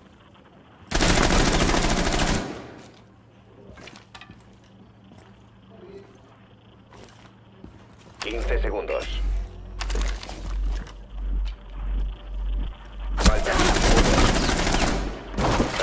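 A rifle fires loud shots at close range.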